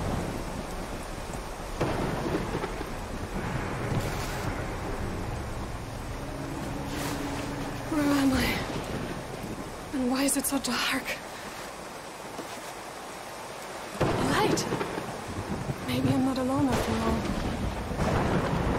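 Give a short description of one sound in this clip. Water laps gently against a small wooden boat.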